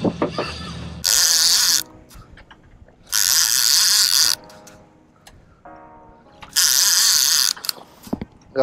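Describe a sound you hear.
A fishing reel whirs loudly in bursts.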